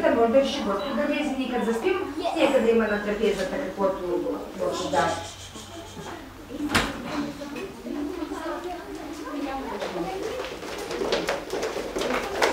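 Young girls sing together nearby.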